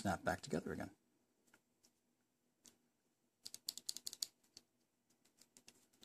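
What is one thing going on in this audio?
A small plastic switch clicks in fingers.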